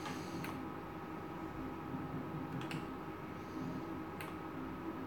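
Slot machine reels click to a stop.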